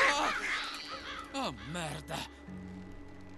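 A man mutters a curse.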